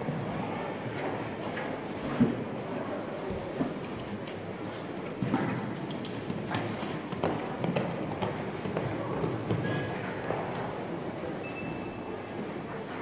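A horse canters on soft sand with dull, rhythmic hoofbeats.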